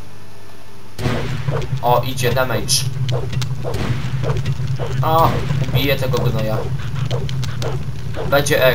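A fire crackles and burns close by.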